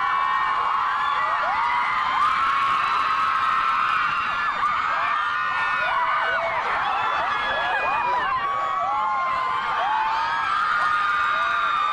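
A crowd of young women screams and cheers excitedly nearby.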